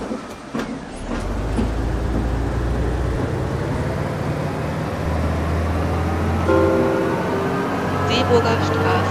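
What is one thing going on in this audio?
A bus engine revs and rises in pitch as the bus pulls away.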